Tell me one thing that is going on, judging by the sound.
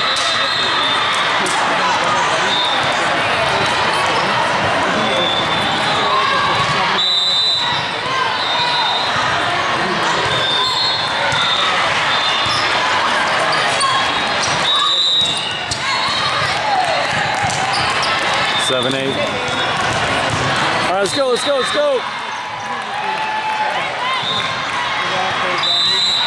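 A crowd of players and spectators chatters and calls out throughout.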